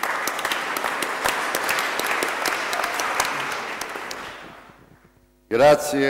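An audience applauds in a large echoing hall, then the applause fades away.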